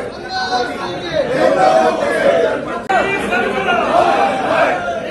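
A crowd of men chants slogans loudly in unison.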